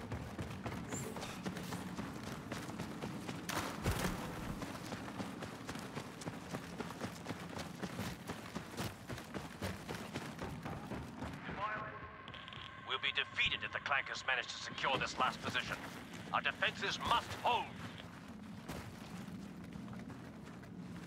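Footsteps run quickly on a hard metal floor.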